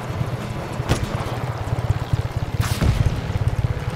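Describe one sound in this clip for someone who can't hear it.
A gun fires a few sharp shots.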